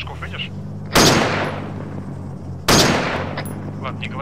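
A rifle fires two loud shots that echo away.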